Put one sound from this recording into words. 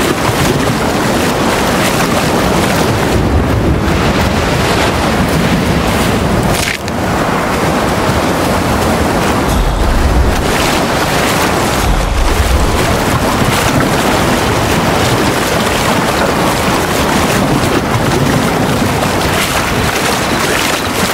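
Waves wash steadily against a rocky shore.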